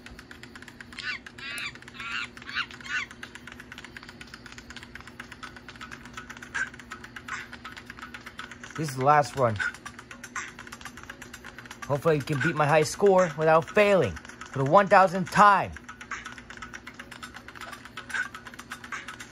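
Game sound effects play from a small phone speaker.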